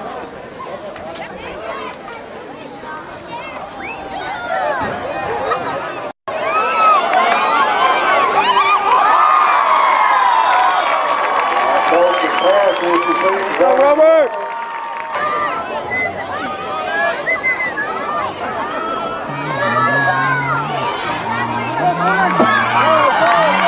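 Young men on the sideline shout with excitement.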